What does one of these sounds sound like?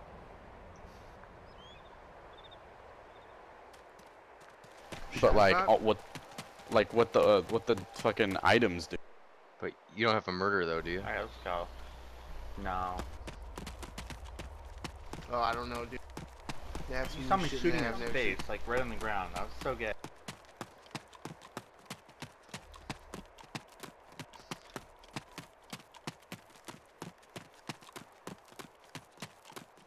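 Footsteps run quickly through dry grass.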